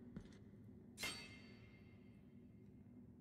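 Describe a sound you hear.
A loud chime rings out and fades.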